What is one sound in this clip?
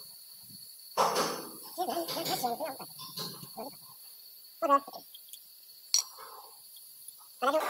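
Metal parts clink as gears are fitted onto a shaft.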